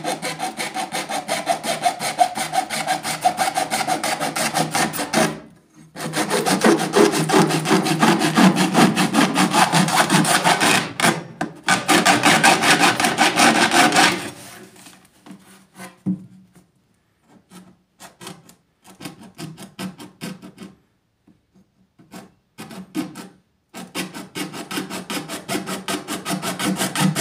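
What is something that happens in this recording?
A metal blade scrapes across hard plastic in rapid back-and-forth strokes.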